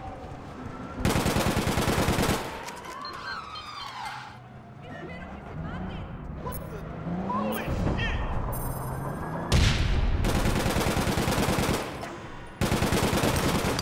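Rapid gunfire rattles in short, loud bursts.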